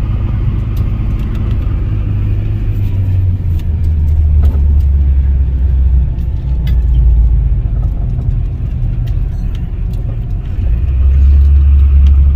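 A car approaches on the road and passes close by.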